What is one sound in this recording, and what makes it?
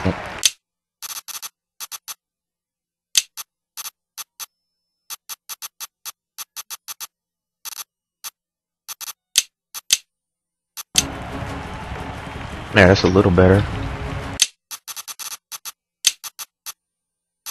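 Short electronic clicks sound again and again as menu options are selected.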